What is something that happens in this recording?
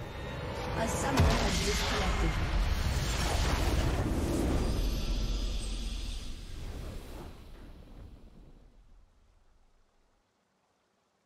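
A triumphant game fanfare swells and then fades to silence.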